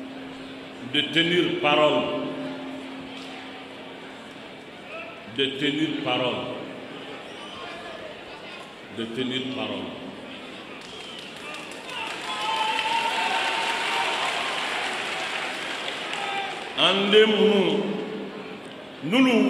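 An elderly man speaks forcefully into a microphone in short bursts with pauses, his voice echoing through a loudspeaker.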